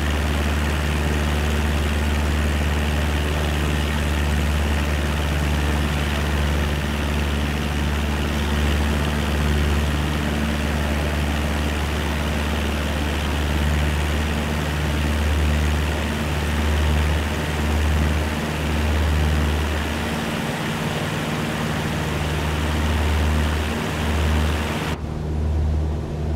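A small propeller plane's engine drones steadily, with a low throbbing hum.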